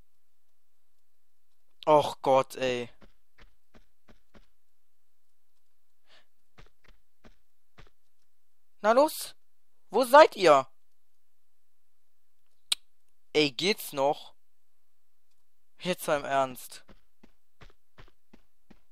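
Light footsteps patter quickly on stone.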